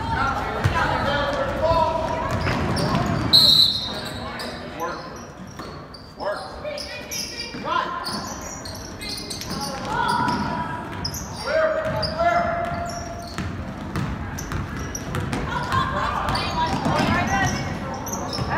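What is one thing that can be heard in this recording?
Spectators nearby shout and cheer in a large echoing gym.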